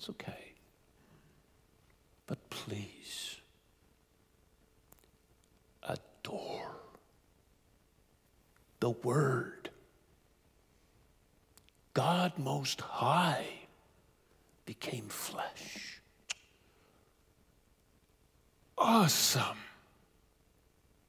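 A man speaks with emphasis in short bursts with pauses, heard through a microphone in an echoing hall.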